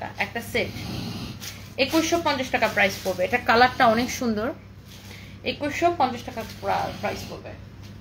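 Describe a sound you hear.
Fabric rustles as a shirt is handled.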